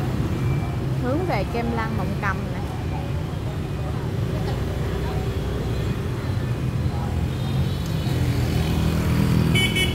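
Motor scooters ride past on a busy city street.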